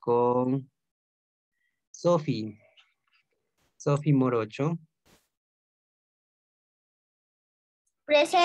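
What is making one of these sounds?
A child speaks in short bursts over an online call.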